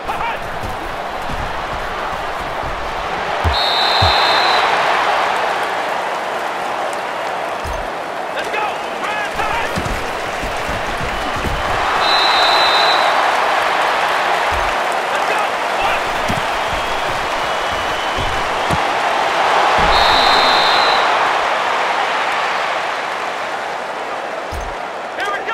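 A stadium crowd roars and cheers, swelling after each play.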